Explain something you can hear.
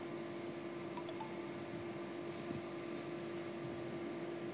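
Fingers tap and handle a phone, with a few light clicks.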